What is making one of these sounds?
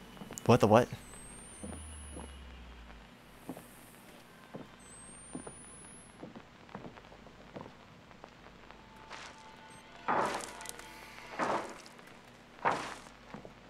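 Footsteps creak on wooden floorboards.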